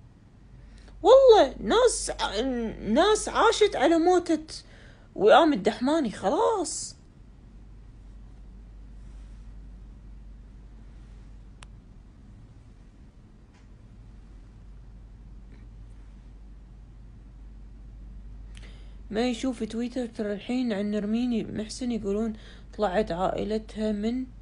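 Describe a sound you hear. A woman speaks with animation close to a phone microphone.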